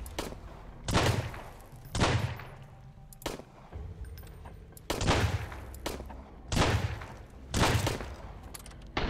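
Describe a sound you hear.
A pistol fires several single shots.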